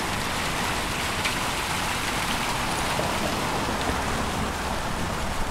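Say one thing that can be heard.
Water splashes steadily in a fountain close by.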